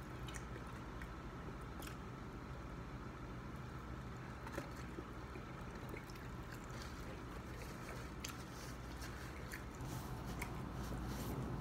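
A man chews food close by.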